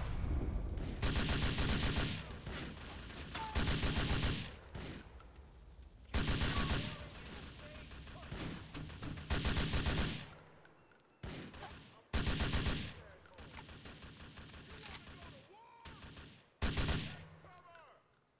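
Rifles fire in rapid bursts nearby.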